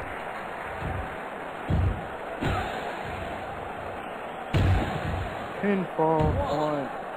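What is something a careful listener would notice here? Heavy bodies thud onto a wrestling ring mat.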